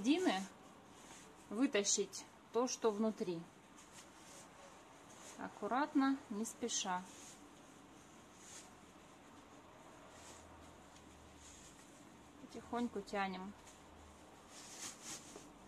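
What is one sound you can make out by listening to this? Soft fabric rustles as cloth is folded and twisted.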